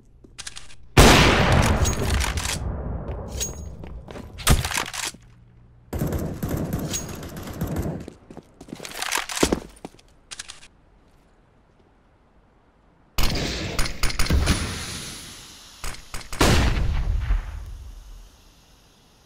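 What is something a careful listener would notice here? A rifle fires loud, sharp shots that echo away.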